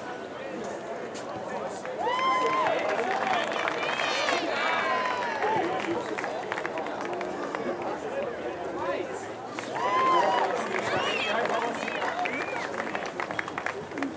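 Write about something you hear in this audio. A large crowd of children and adults chatters and cheers outdoors.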